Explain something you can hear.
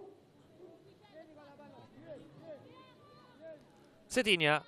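Young women call out to each other far off across an open field.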